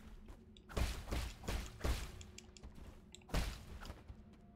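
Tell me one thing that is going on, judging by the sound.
Sharp slashing and hitting sounds from a game ring out.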